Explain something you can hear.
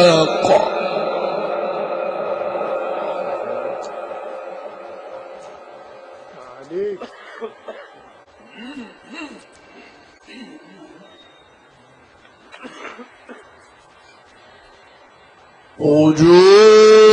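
An elderly man chants into a microphone through loudspeakers, with echo.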